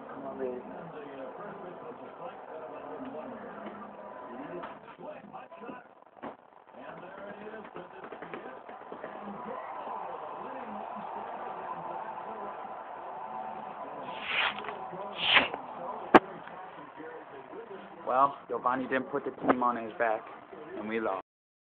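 A stadium crowd murmurs steadily through a television speaker.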